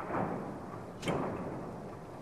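A game menu makes a short click as the selection moves.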